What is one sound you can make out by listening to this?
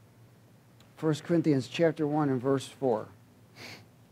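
A man reads aloud calmly into a microphone.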